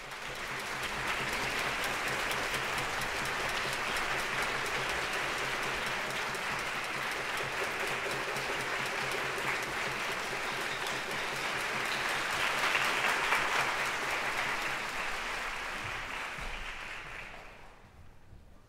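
Applause fills a large hall, then dies away.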